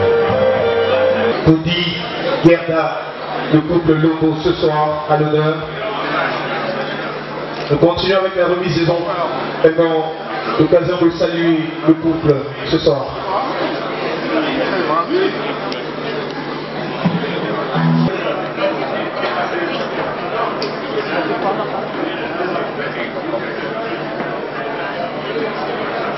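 A crowd chatters throughout a large room.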